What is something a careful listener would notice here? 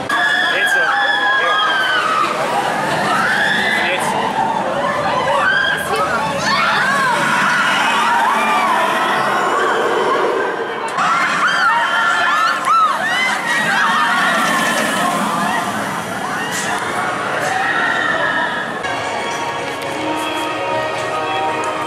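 Coaster riders scream loudly, nearby and overhead.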